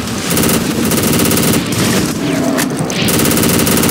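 Explosions boom.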